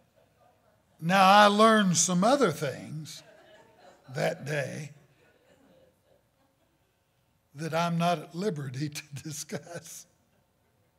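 An older man preaches with animation through a microphone, with pauses between phrases.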